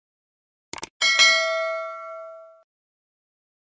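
A small bell chimes and slowly fades.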